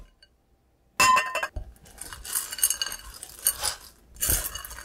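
A spatula scrapes and clinks against chocolate chips in a glass bowl.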